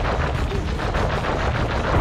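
A small explosion bursts.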